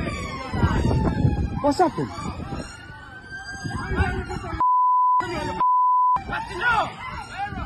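A crowd of men shout outdoors.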